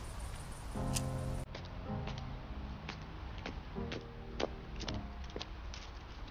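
Footsteps scuff on stone steps outdoors.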